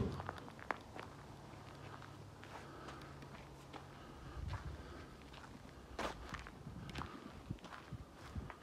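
Footsteps rustle through grass close by.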